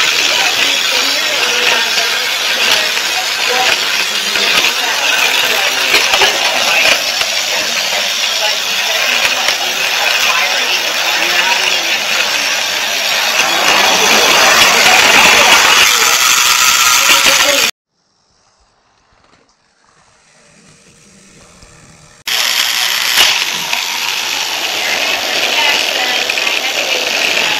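A toy train rattles and whirs along plastic tracks close by.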